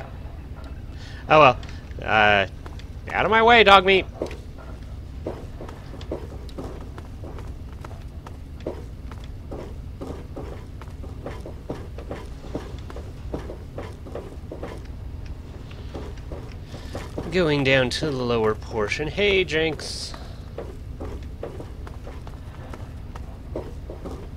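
Footsteps clank on a metal floor at a steady walking pace.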